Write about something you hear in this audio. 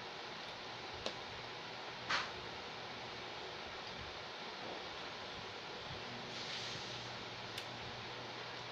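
A spoon clinks against a plate now and then.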